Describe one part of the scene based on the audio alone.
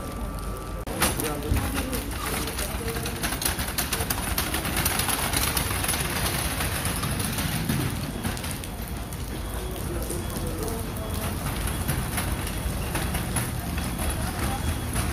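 A stretcher's wheels rattle over paving stones.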